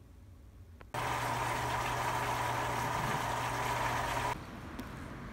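A washing machine drum churns and sloshes laundry.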